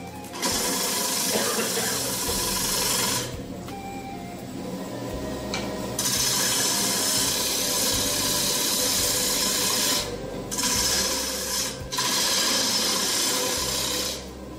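A gouge scrapes and hisses against spinning wood, in bursts.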